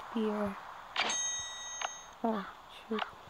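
A short game chime rings out.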